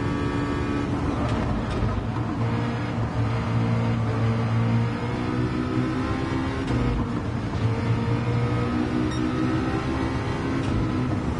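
A racing car engine drops in pitch as the car brakes, then climbs again.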